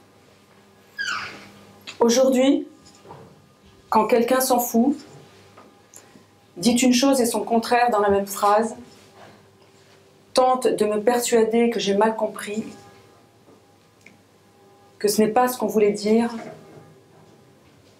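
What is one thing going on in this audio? A middle-aged woman reads aloud calmly, close by, with short pauses.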